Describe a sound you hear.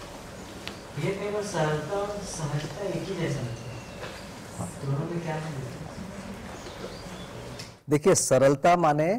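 An elderly man speaks calmly into a clip-on microphone.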